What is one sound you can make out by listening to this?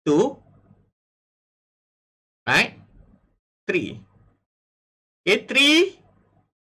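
A young man speaks calmly into a close microphone, in short bursts with pauses.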